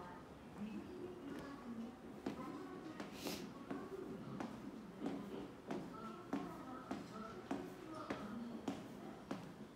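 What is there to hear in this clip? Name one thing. Footsteps go down stairs at a steady pace, echoing slightly.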